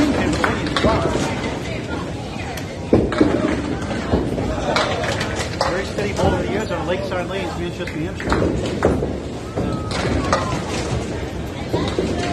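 Bowling balls roll down wooden lanes with a low rumble.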